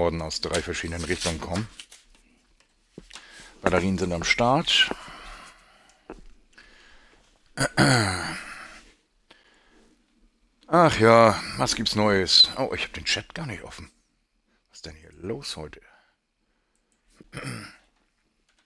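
A man talks with animation close to a headset microphone.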